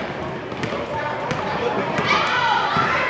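A basketball bounces on a hard wooden floor.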